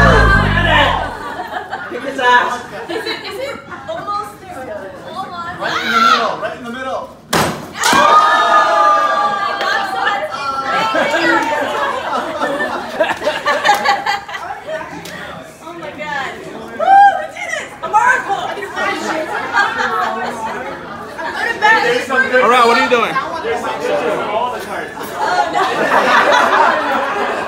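A lively crowd of men and women chatter and cheer.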